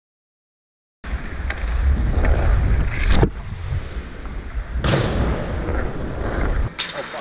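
Skate blades scrape and carve across ice close by.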